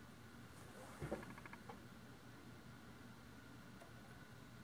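A knob clicks as a hand turns it.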